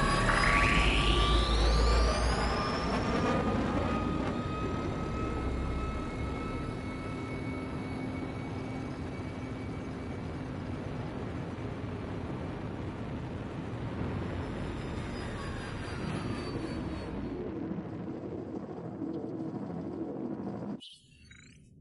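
A spaceship's engine roars and whooshes at high speed.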